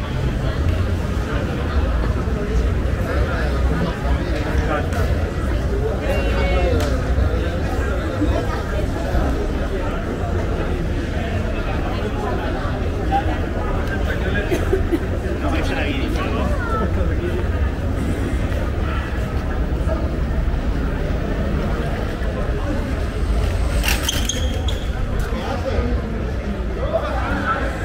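Men and women chatter nearby.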